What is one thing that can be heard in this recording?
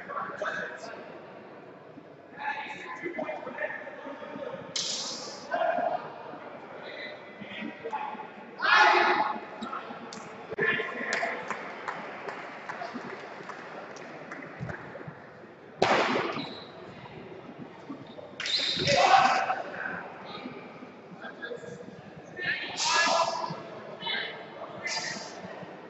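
Men and women call out and chatter in a large echoing hall.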